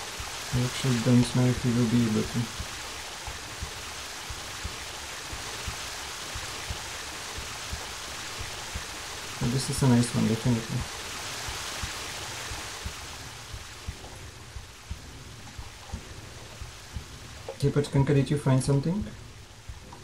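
A man talks calmly into a microphone in short bursts.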